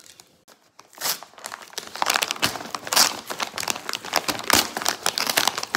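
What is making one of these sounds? A paper mailer crinkles and tears as hands pull it open.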